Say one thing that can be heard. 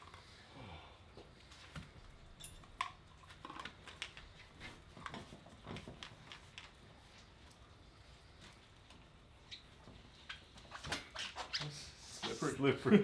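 Metal clicks and rattles as a device is handled.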